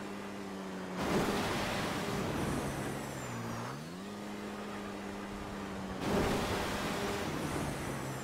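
A rocket thruster roars in loud bursts.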